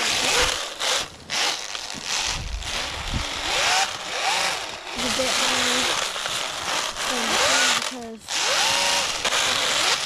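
Snow sprays and hisses under the spinning tyres of a toy car.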